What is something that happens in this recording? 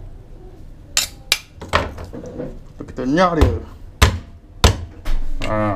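A cleaver chops sharply on a wooden board.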